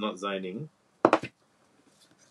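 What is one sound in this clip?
A hard plastic block clicks against a tabletop.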